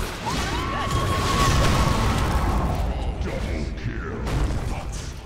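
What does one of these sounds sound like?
Game spells crackle and boom in a fast battle.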